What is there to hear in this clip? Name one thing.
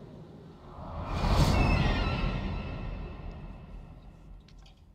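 A large bird lets out a loud, shrill screech that slowly fades.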